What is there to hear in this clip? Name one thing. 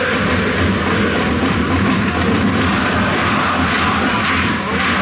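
A large crowd of fans sings and chants loudly in an open stadium.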